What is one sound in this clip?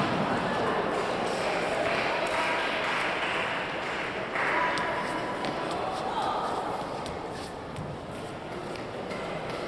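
People's voices murmur and echo through a large hall.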